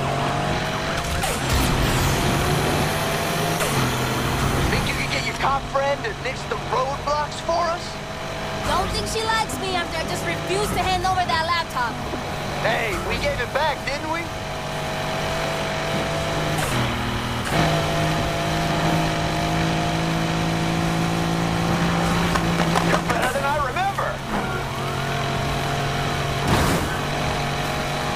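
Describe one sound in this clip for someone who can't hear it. A sports car engine roars steadily at high speed, shifting gears now and then.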